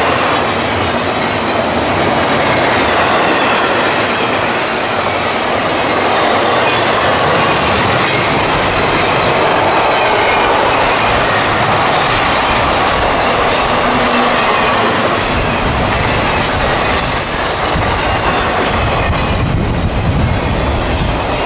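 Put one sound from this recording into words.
A long freight train rumbles and clatters steadily past close by.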